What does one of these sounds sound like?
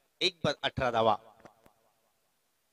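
A young man calls out briefly outdoors.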